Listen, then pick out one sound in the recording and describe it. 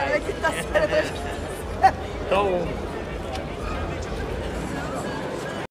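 A crowd murmurs in the background outdoors.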